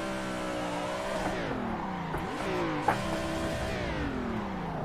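Tyres squeal on tarmac through a corner.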